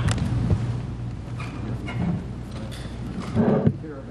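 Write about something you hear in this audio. Papers rustle.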